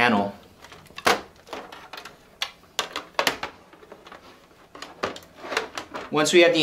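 A metal computer case panel clicks and clanks as it slides off.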